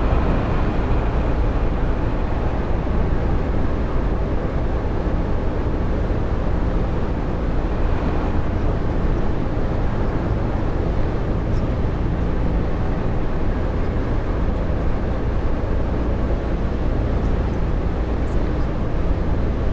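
Tyres roll on a highway with a constant rush.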